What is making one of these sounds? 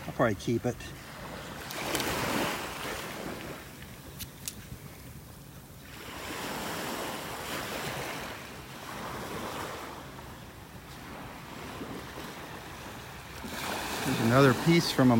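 Small waves wash gently onto the shore, swelling and fading.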